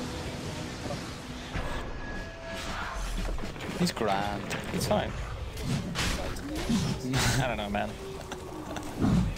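Spell effects crackle and whoosh in a fight.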